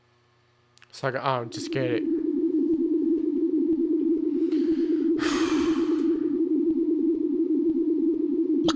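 A low buzzing drone hums steadily.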